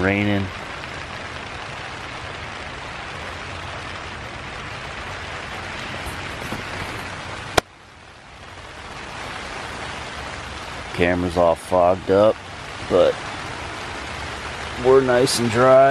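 A man speaks close by, in short bursts.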